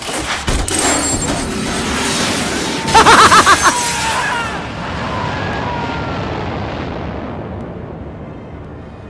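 A loud explosion booms and its roar slowly fades.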